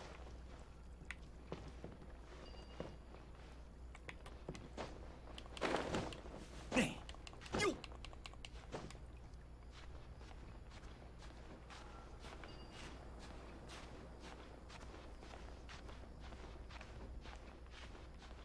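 Hands and feet scrabble against rock during a climb.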